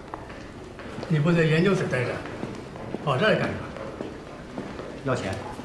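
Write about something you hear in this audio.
An elderly man speaks sharply close by.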